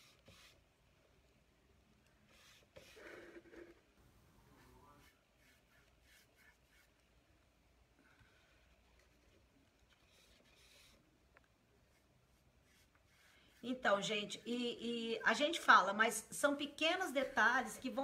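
A brush dabs paint onto a wooden box.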